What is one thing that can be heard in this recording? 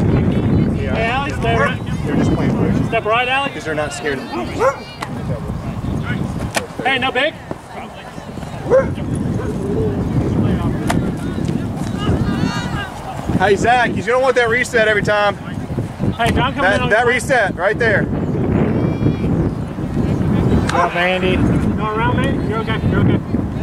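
Young people shout and call out to each other across an open field.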